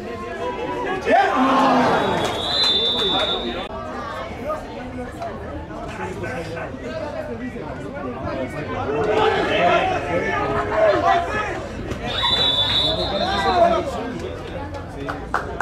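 Players and spectators shout and cheer outdoors.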